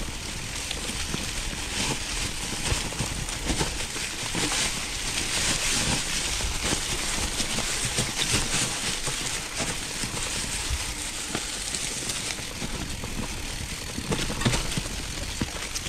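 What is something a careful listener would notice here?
Wind buffets a microphone as a bicycle rolls along.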